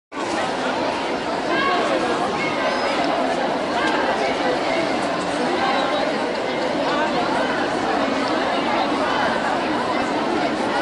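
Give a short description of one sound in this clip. A crowd of men and women chants and shouts together outdoors.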